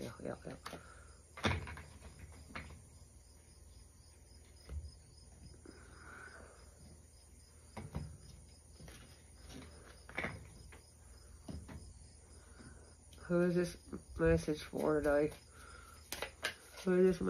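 Playing cards shuffle and tap against a table.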